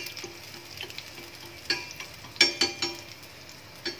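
Chopsticks clink against a metal pan.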